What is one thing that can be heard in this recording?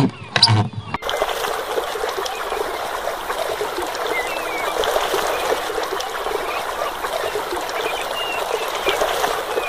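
Water pours from a small pipe and splashes into a pool.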